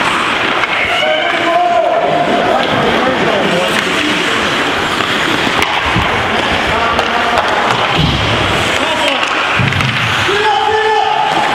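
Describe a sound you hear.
Young players shout across an echoing rink.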